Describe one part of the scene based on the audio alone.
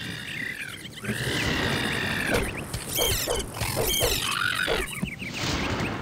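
A sword swishes through the air and strikes.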